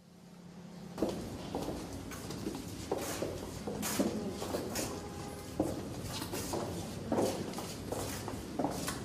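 Footsteps shuffle along a hard corridor floor.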